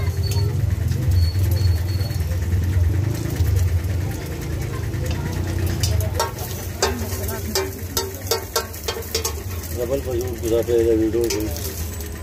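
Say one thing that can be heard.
A metal spatula scrapes and taps on a griddle.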